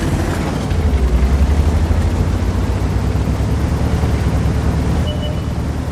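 Heavy tank engines rumble and track treads clatter steadily close by.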